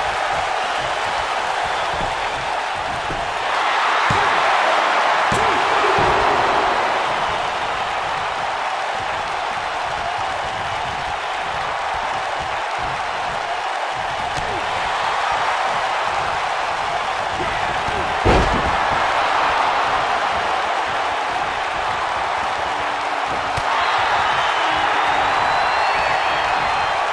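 A large crowd roars and cheers steadily in a big arena, swelling at times.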